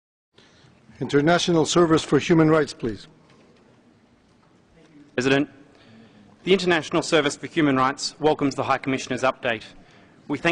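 A man speaks steadily through a microphone in a large hall.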